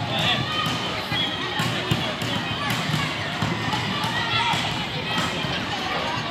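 Children shout and call to each other from a distance outdoors.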